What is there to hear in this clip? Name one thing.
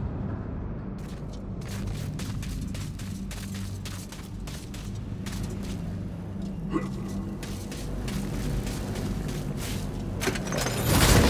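Footsteps tap quickly on hard ground.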